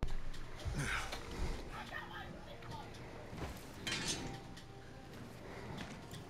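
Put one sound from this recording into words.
A large sword swishes through the air.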